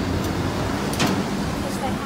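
A heavy truck rumbles on the road.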